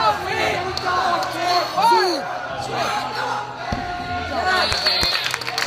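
Several young men chatter and call out in a large echoing hall.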